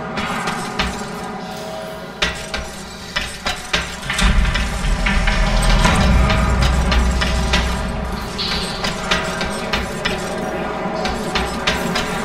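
Armoured footsteps clank on metal grating.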